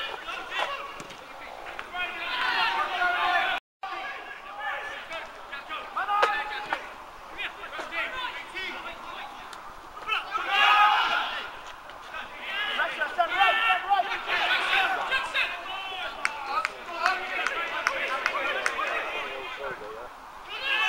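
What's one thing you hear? Men shout to each other across an open pitch outdoors.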